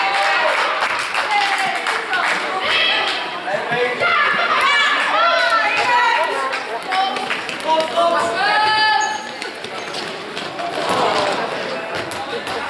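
Young women shout and call to each other across a large echoing hall.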